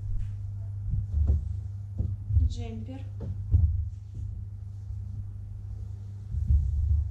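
Fabric rustles and flaps as it is handled.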